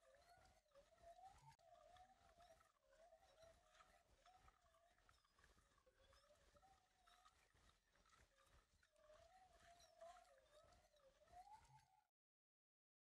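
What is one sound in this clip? A fishing reel winds in line.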